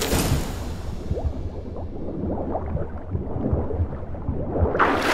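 Water bubbles and gurgles with a muffled, underwater sound.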